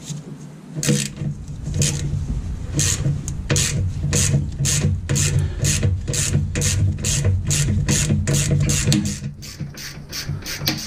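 A ratchet wrench clicks rapidly in quick strokes.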